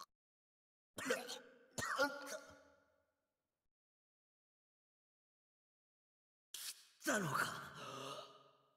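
A young man speaks tensely with surprise.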